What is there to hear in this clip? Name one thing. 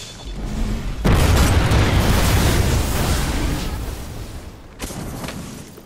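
A loud rushing roar swells and slowly fades.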